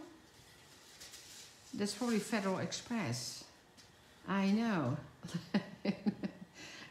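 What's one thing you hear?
A stiff paper card rustles softly in hands.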